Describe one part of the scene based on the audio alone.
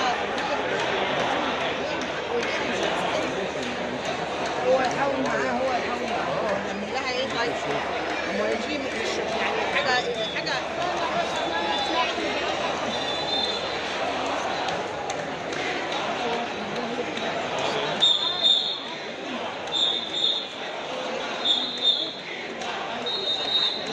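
Several people talk over one another in a crowded room.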